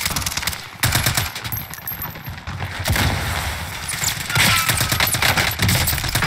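A rifle fires in quick bursts of sharp shots.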